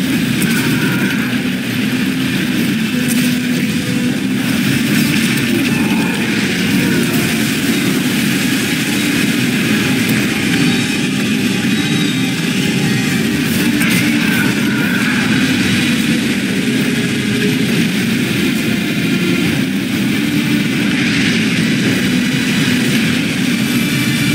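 Waves splash against a small boat.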